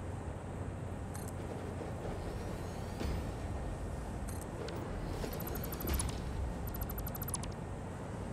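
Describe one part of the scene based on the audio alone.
A building piece clicks into place with a short electronic blip.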